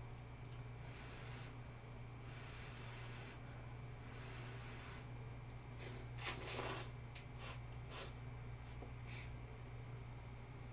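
A young woman chews noodles with soft wet mouth sounds.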